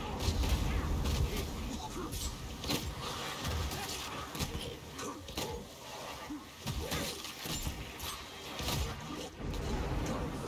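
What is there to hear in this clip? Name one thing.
Weapons slash and clash against monsters.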